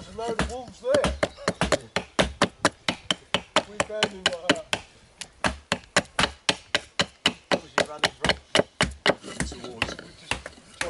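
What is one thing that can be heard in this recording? A stick knocks rapidly against a knife's spine on wood.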